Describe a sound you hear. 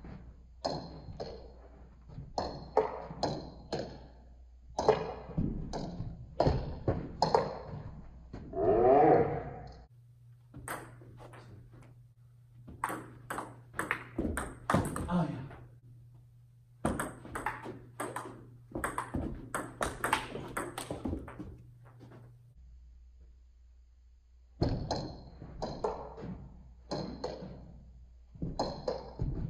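A ping-pong ball clicks rapidly back and forth off paddles and a table.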